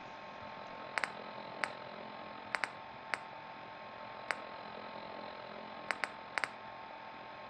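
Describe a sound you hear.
Short soft clicks tick as a menu selection moves.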